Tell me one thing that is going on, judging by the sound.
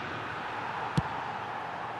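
A football is struck with a sharp thud.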